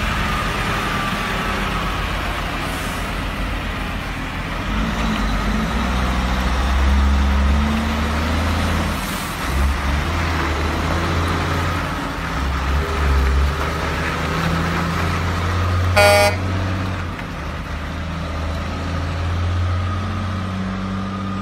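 A heavy truck engine rumbles deeply as the truck pulls away slowly.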